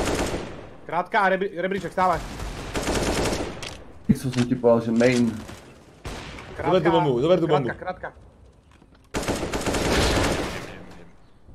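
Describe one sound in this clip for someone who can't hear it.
Rifle shots ring out in rapid bursts.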